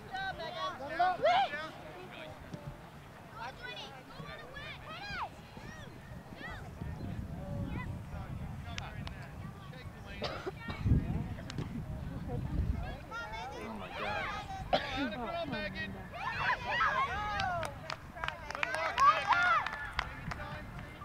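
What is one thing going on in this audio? Young girls shout and call to each other across an open field.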